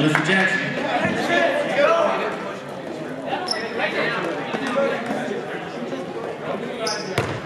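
Young players and spectators shout and chatter in an echoing gym.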